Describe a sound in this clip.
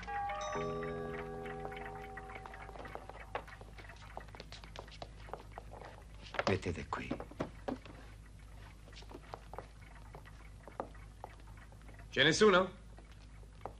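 Clocks tick steadily.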